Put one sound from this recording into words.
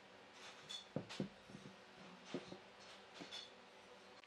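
A wooden log thumps and rolls on a wooden table.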